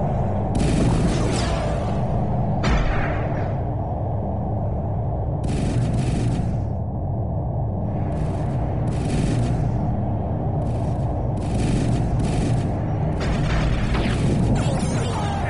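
Laser guns fire in rapid hissing bursts.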